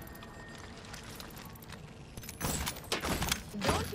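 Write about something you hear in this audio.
Short game interface blips sound as items are picked from a menu.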